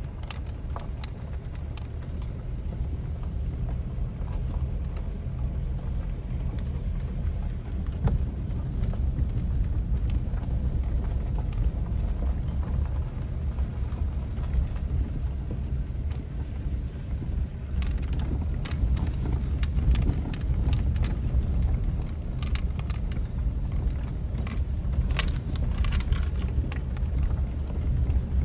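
Tyres crunch and bump over a rutted dirt track.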